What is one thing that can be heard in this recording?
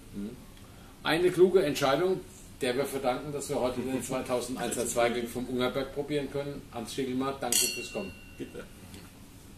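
An older man speaks calmly and with animation close by.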